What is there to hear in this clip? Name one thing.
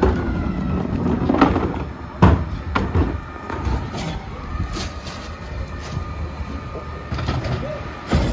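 Plastic bins thump and knock as they are rolled and lifted.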